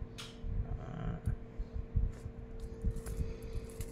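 Metal watch straps clink softly as hands handle them.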